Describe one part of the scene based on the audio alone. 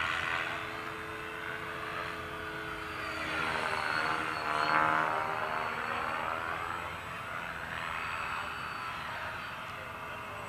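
A small propeller aircraft drones overhead, growing louder as it passes close and then fading.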